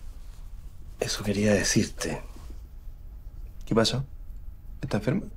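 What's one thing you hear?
An older man speaks in a low, calm voice close by.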